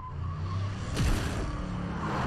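A car strikes something with a heavy thud.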